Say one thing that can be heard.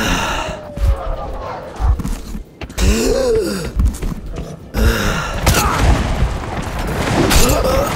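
Heavy footsteps tread steadily over rough ground.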